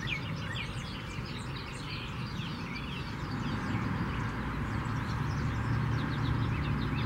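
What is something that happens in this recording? Birds chirp and twitter rapidly nearby.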